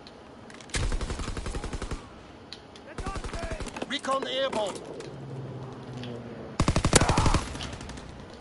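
Rapid gunfire bursts loudly in quick rattling volleys.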